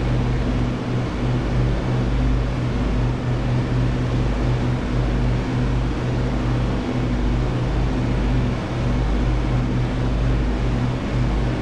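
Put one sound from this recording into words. An aircraft engine drones steadily from inside the cockpit.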